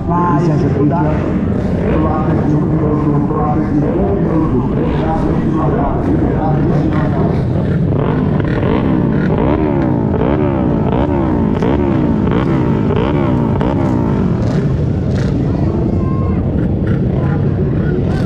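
Motorcycle engines rumble and rev loudly nearby.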